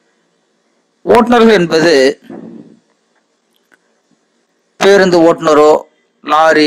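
A middle-aged man speaks calmly and clearly, in short phrases.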